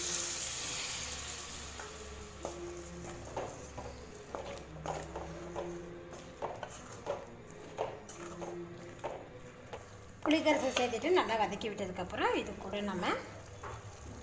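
A spoon scrapes and clacks against a metal pot while stirring.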